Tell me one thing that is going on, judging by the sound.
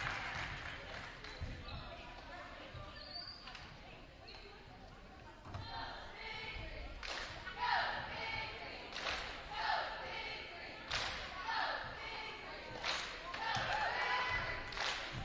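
Young women talk and call out together in a large echoing hall.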